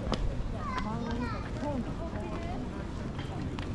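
Young women chat casually nearby as they walk.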